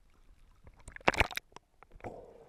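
Water splashes sharply at the surface.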